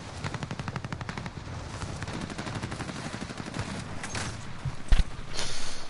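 Wind rushes past during a parachute descent.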